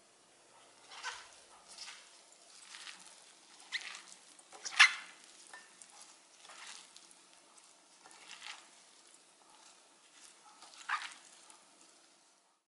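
Gloved hands squelch and squish through a sticky, saucy mixture.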